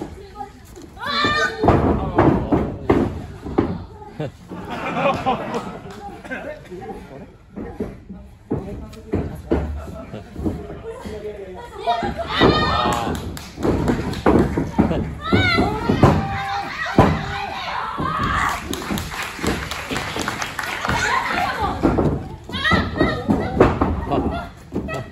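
A young woman shouts and cries out with effort.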